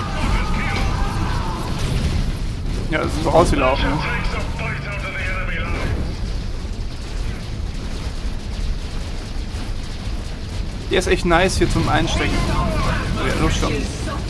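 Energy beams zap and fire.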